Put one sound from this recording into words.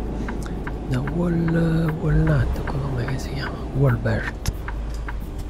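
A man speaks casually into a microphone.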